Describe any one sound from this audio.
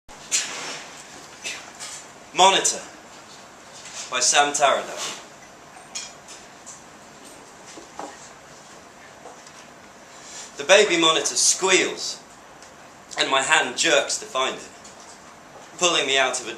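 A man reads aloud expressively in bursts, with pauses between lines.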